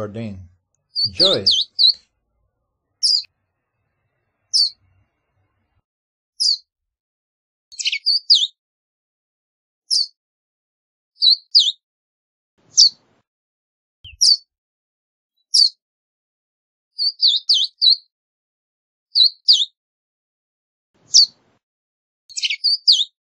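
A small bird chirps with short, sharp, high calls at regular intervals.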